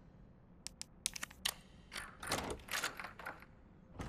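A key turns in a door lock with a metallic click.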